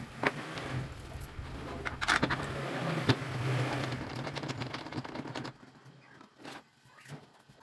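A wooden fence slides and knocks on a wooden table top.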